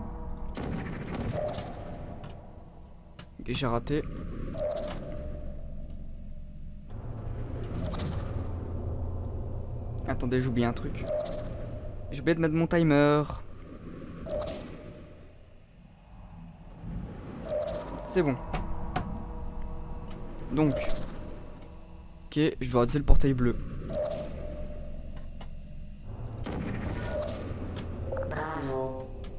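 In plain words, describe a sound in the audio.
A sci-fi energy gun fires sharp, zapping bursts again and again.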